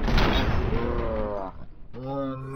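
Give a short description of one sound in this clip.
A gunshot rings out loudly.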